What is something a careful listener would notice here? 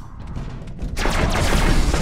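An electric weapon crackles and fires in bursts.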